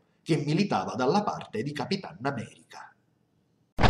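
An adult man speaks with animation close to a microphone.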